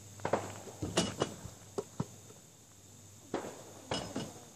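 A basketball clangs off a backboard.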